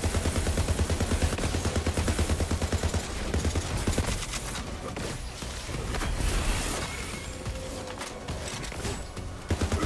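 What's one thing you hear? Energy blasts crackle and hiss.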